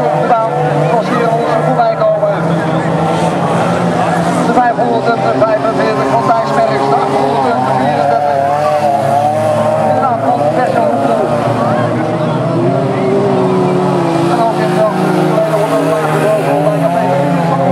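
Car engines roar and rev as cars race over rough ground outdoors.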